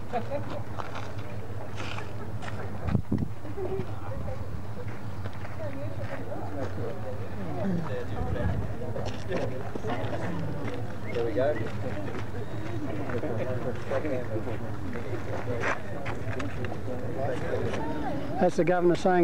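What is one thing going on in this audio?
A man speaks calmly into a microphone outdoors.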